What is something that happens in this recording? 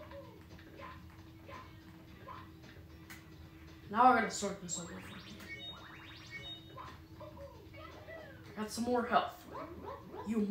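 Video game music plays through a television speaker.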